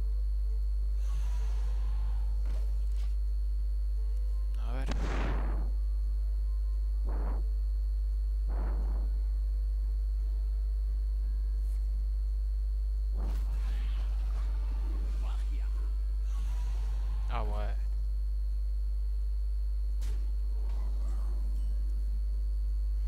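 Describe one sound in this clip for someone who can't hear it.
Card game sound effects whoosh and chime as cards are played.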